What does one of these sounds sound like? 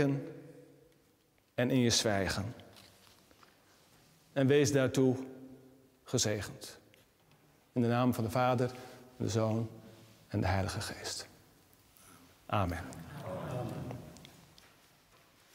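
A man speaks calmly and clearly in a large echoing room.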